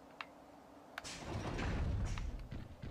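A metal door swings open.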